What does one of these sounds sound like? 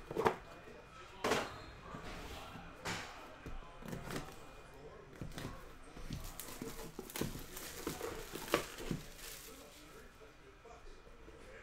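Cardboard boxes knock and slide on a table.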